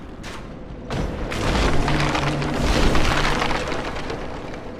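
A heavy body rolls and thuds on dirt, kicking up a dusty rush.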